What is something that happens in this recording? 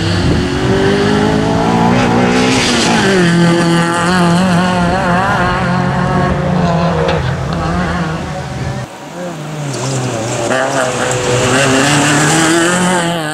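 A rally car engine revs hard and rises and falls in pitch as the car speeds past.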